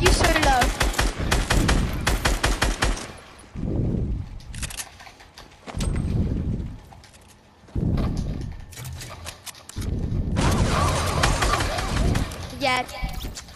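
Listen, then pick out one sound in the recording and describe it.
An assault rifle fires rapid bursts.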